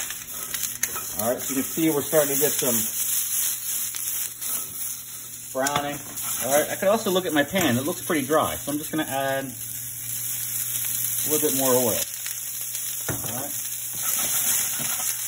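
Vegetables sizzle steadily in a hot frying pan.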